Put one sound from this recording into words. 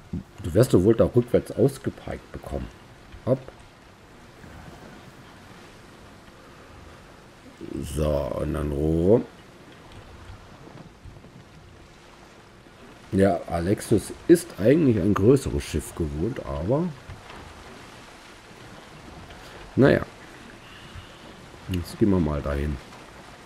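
Water laps and splashes against a wooden ship's hull.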